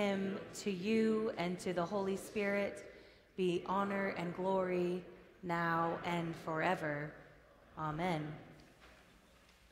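A choir of mixed voices sings in a large echoing hall and then falls silent.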